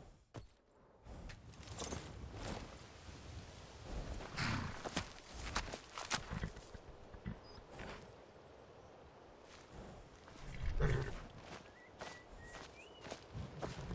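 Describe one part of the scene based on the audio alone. Footsteps crunch through dry grass and leaves.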